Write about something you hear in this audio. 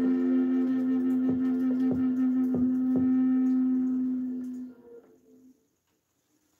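A wooden flute plays a low, steady melody close to a microphone.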